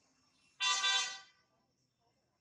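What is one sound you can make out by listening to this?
A baby monkey lets out a loud, shrill squeal.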